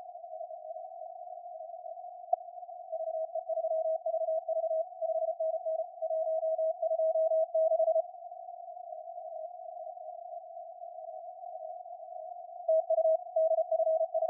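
Radio static hisses softly throughout.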